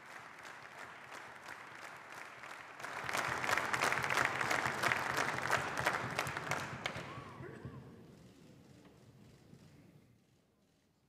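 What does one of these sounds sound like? A large crowd applauds in an echoing hall, swelling and then slowly fading.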